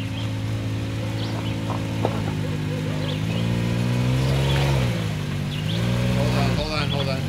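An off-road vehicle's engine rumbles and revs as it climbs over rocks.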